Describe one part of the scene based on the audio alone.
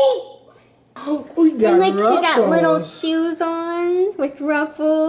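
An elderly woman laughs and talks with animation close by.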